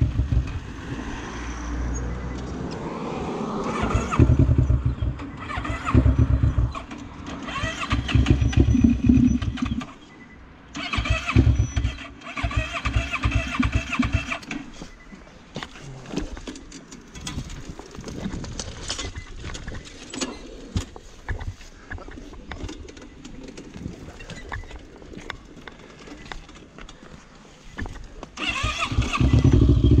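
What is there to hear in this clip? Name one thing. A quad bike engine idles close by with a low rumble.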